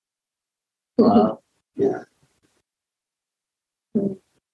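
A woman speaks in short, bright bursts over an online call.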